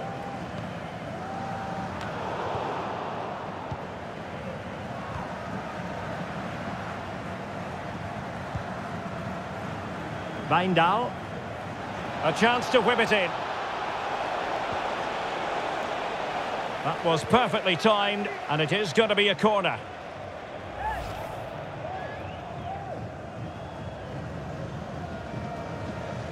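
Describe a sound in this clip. A large stadium crowd murmurs and chants steadily.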